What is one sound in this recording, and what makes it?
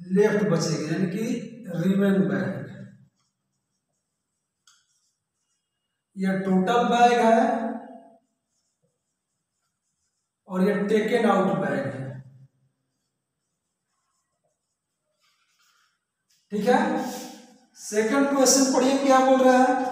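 A man explains in a calm, teaching voice, in short bursts with pauses.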